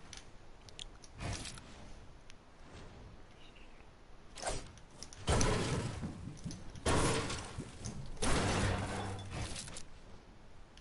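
A video game pickaxe strikes building pieces.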